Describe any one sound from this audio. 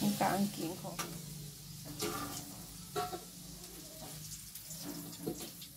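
A metal spatula scrapes and clatters in a wok.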